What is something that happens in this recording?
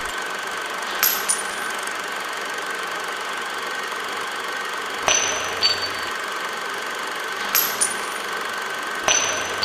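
A spent shell casing clinks and rings as it bounces on a hard floor.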